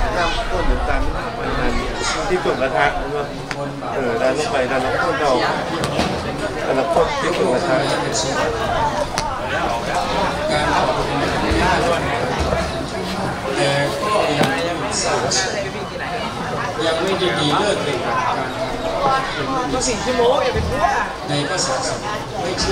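Young men talk and call out nearby outdoors.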